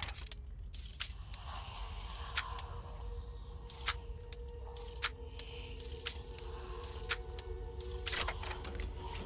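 Metal lock pins click sharply, one after another.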